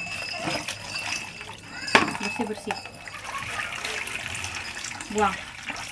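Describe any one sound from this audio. Water pours from a jug and splashes into a plastic basin.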